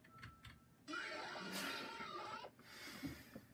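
A shrill electronic screech blares from small computer speakers.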